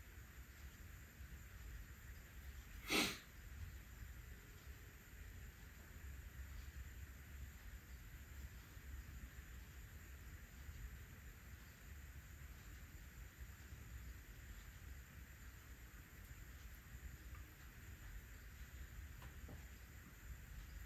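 Wet clay squishes softly as it is pressed and shaped by hand.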